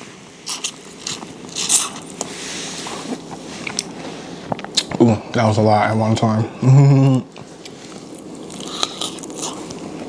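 A man chews and smacks his lips loudly close up.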